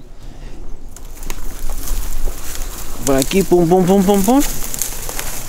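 Dry brush rustles and crackles underfoot.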